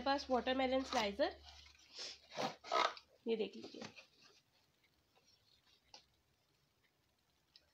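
Plastic packaging rustles and clicks as a hand handles it.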